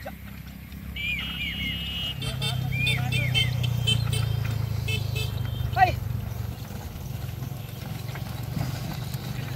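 Wheels of a horse-drawn cart rumble over a dry stubble field.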